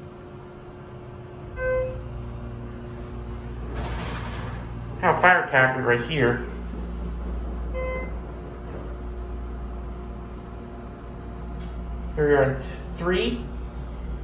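An elevator motor hums low and steady as the car moves.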